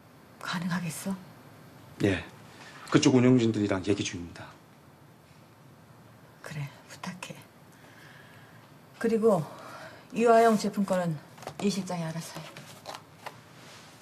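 A middle-aged woman speaks calmly and firmly nearby.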